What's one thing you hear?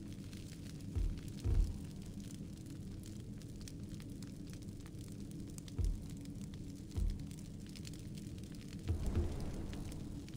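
Soft thuds sound as game menus are clicked.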